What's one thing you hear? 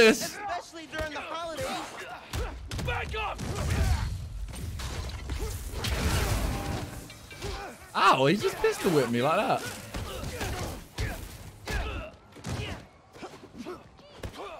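Punches and kicks thud in quick succession.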